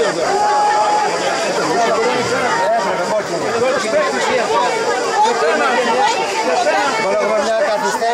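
Several young men shout and cheer excitedly outdoors.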